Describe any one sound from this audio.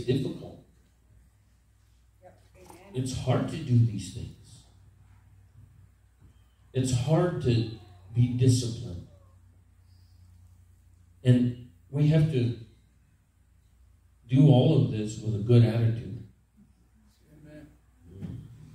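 A man preaches with emphasis through a microphone, in bursts with pauses, in a reverberant room.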